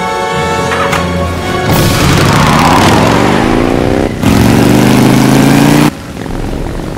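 A motorcycle engine starts and revs loudly, rising in pitch as it pulls away.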